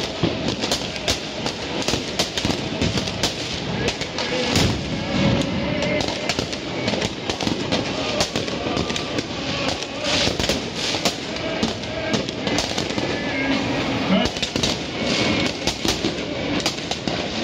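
Fireworks crackle and bang repeatedly in the distance.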